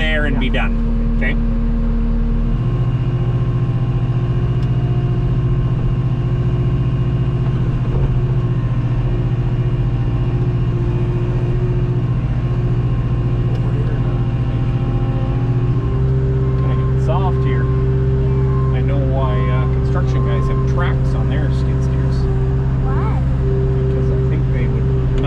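A skid steer loader's diesel engine drones steadily close by.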